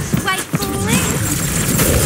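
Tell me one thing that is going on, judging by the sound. Rapid laser gunfire crackles and zaps.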